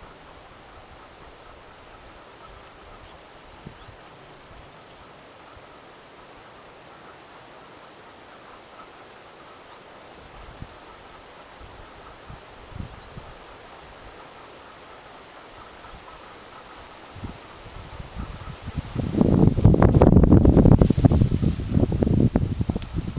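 Bees buzz softly close by.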